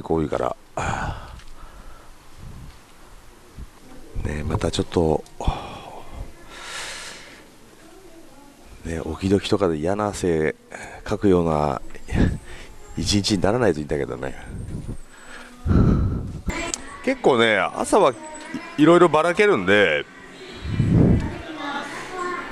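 A young man talks with animation, close through a headset microphone.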